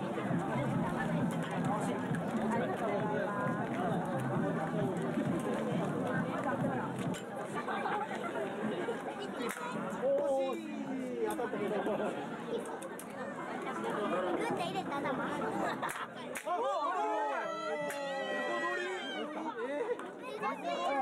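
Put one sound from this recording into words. A crowd of children and adults chatters outdoors.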